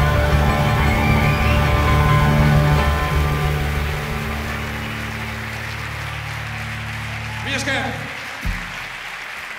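Drums and cymbals play along with the music.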